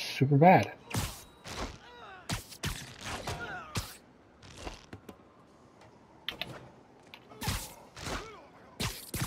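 Heavy punches land with sharp thuds.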